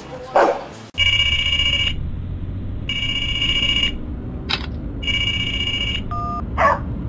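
A mobile phone rings in repeated bursts.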